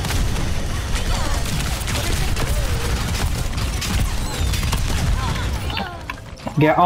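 Energy weapons fire in rapid crackling bursts.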